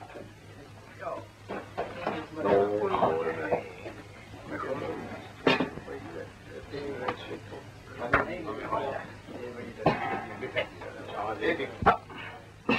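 Men and women talk together in a crowd nearby.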